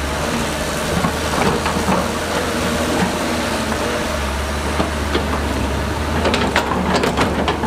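Rocks and dirt clatter and scrape under an excavator's tracks and bucket.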